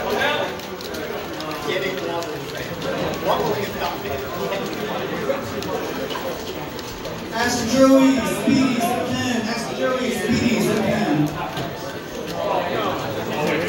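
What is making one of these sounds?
Fast-paced game music plays through a television speaker.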